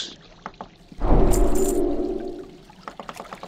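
A magic spell rings out with a shimmering chime.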